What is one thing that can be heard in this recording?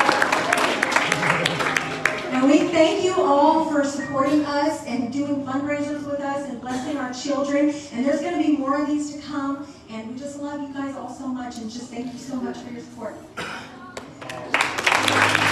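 A woman sings into a microphone, amplified through loudspeakers in a large room.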